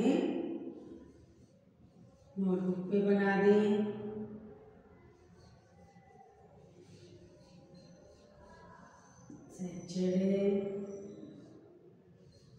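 A woman speaks slowly and clearly, as if teaching, close by.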